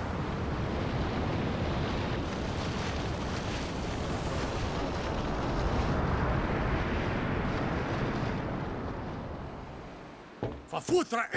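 A large ship's engine rumbles steadily and then fades away.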